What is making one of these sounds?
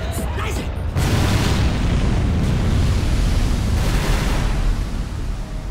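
A shell explodes in the sea with a heavy boom.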